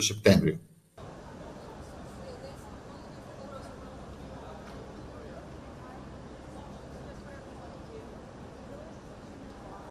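Diners murmur quietly at outdoor tables.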